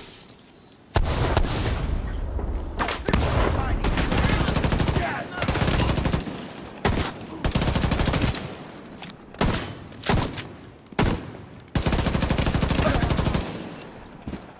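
Automatic gunfire rattles in long, loud bursts.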